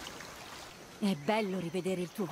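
A young woman speaks calmly and warmly, close by.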